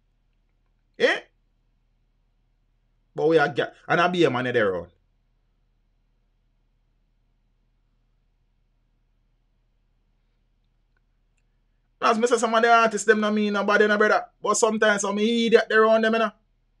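A man speaks close to a microphone, in short bursts, with pauses.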